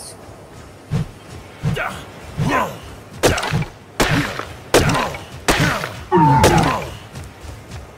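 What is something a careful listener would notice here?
Fists thump repeatedly against wood.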